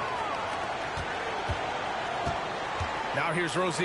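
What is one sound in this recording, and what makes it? A basketball bounces on a hard court floor.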